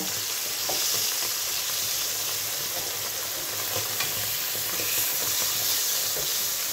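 A metal fork and spatula scrape and tap against a pan.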